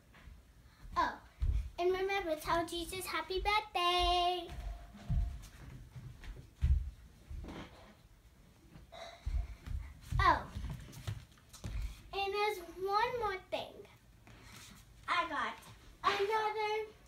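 A young girl talks excitedly and squeals close by.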